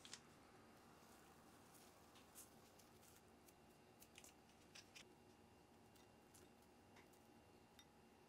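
Small pinches of food patter softly into a plastic bowl.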